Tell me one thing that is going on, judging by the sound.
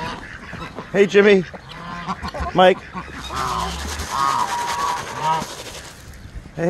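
Turkeys gobble nearby.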